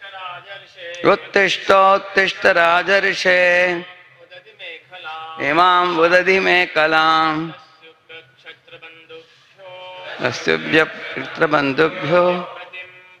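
An elderly man chants verses in a melodic voice through a microphone.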